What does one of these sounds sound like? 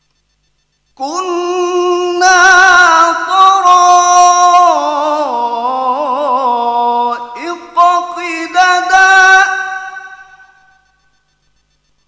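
A man chants in a long, melodic voice through a microphone.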